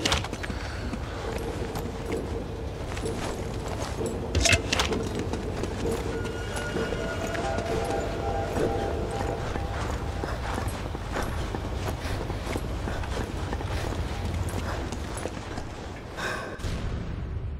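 Footsteps thud steadily on hard floors and metal walkways.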